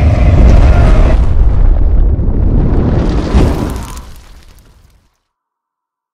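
A fiery burst roars and whooshes, then fades away.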